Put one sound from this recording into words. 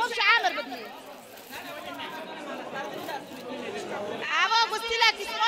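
A crowd of women chatters nearby.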